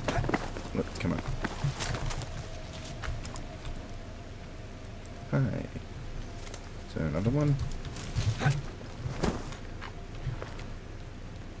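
Footsteps rustle through dry brush and undergrowth.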